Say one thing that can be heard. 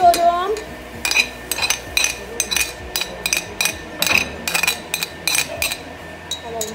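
A spoon scrapes and taps against a plate.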